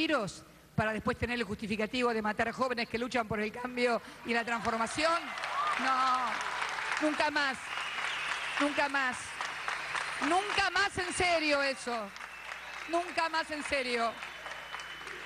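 A woman speaks through a microphone with passion, her voice carried over loudspeakers.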